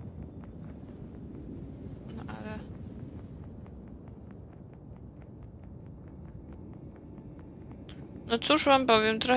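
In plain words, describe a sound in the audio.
Light footsteps patter quickly on a hard floor.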